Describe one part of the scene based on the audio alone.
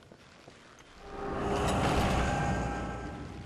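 A heavy wooden door grinds open.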